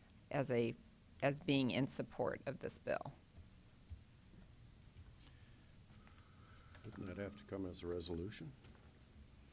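A woman speaks calmly through a microphone, with pauses.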